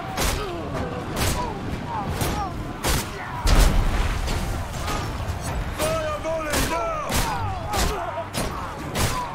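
Swords and shields clash.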